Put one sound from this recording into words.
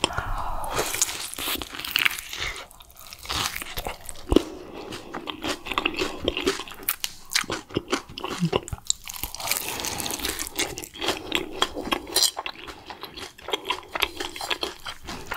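A young woman chews and smacks her lips wetly close to a microphone.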